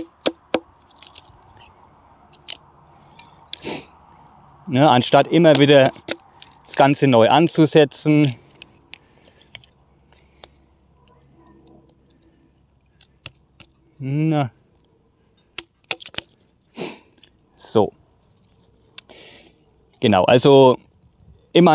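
A knife taps and scrapes against wood.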